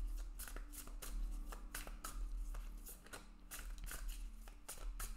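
Playing cards are shuffled with soft, quick rustling and flicking.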